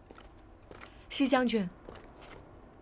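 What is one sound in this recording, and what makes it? A woman speaks softly.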